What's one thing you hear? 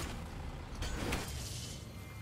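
An axe thuds into wood.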